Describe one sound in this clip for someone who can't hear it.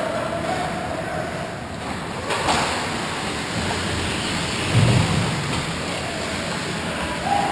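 A hockey stick clacks against a puck.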